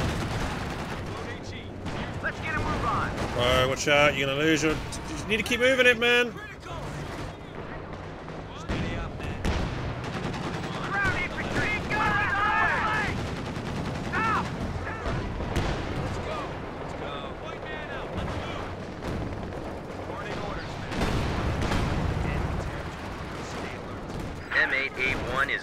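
Gunfire rattles and explosions boom in a battle.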